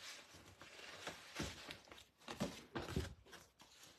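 A hand rubs across paper.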